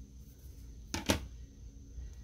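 A paper page clicks onto binder rings.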